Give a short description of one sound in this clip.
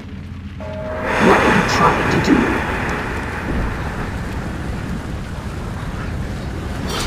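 A burst of fire roars nearby.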